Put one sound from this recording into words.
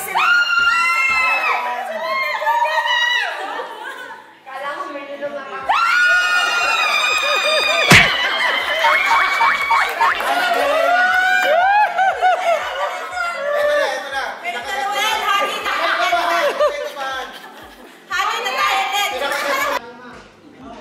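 Several women laugh and shriek with excitement close by.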